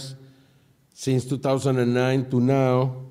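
An elderly man speaks steadily into a microphone.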